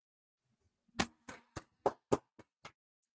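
A young man claps his hands a few times.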